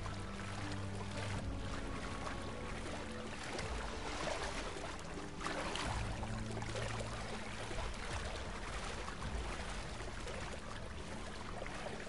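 Water splashes as large birds wade through it.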